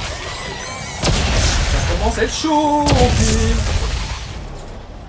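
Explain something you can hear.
A weapon fires sharp energy shots.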